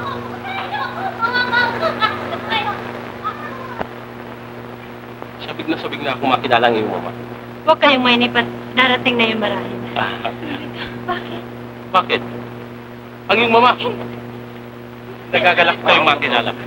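A man talks with animation, heard through an old, hissy film soundtrack.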